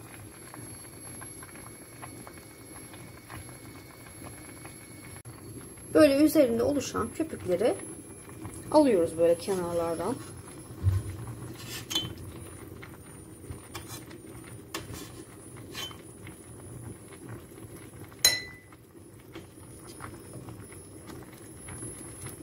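Liquid bubbles and simmers steadily in a pot.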